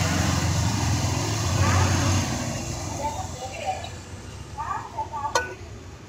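Metal tongs clink and rustle through shredded chicken in a pot.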